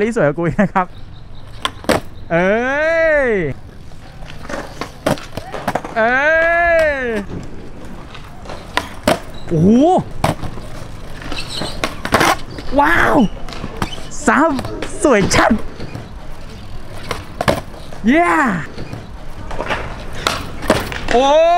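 A skateboard's wheels roll and rumble over concrete.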